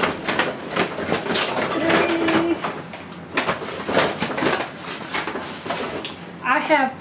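Paper and plastic bags rustle and crinkle close by.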